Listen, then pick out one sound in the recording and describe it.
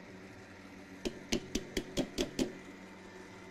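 A metal mixing bowl clicks and rattles as it is locked onto a stand mixer.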